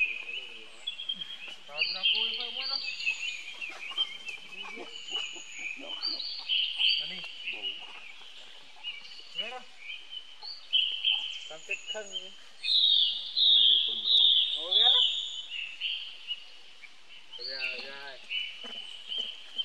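A monkey gives short squeaky calls close by.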